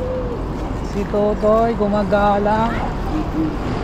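A young child calls out nearby.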